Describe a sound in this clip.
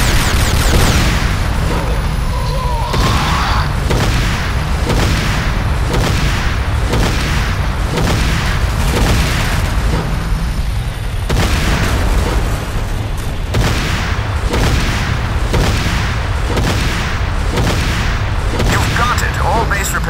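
A tank cannon fires repeatedly with loud booming blasts.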